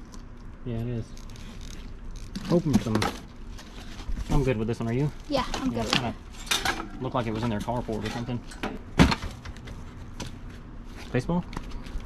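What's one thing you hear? Items clatter and rustle as they are moved around in a cardboard box.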